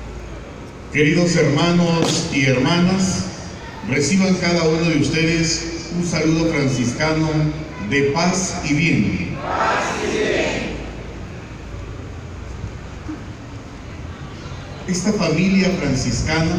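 A man speaks calmly into a microphone, heard through loudspeakers outdoors.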